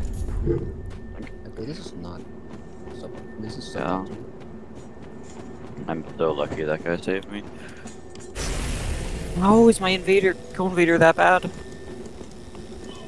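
Footsteps run quickly over stone and snow.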